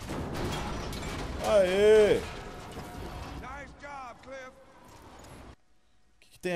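A heavy metal crash rumbles loudly.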